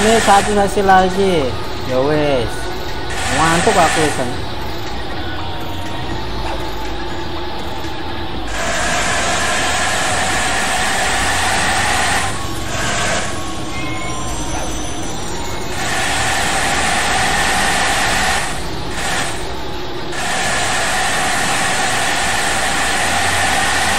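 A bus engine hums steadily as the bus drives along a road.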